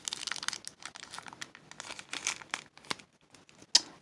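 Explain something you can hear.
A plastic wrapper crinkles in a hand.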